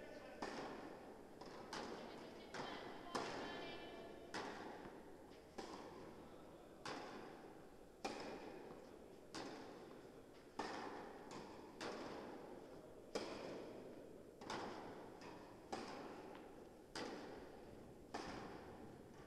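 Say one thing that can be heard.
A tennis racket strikes a ball with sharp pops that echo through a large hall.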